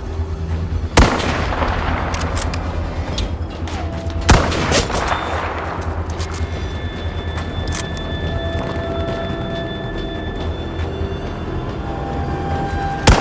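A rifle fires loud, sharp shots that echo away.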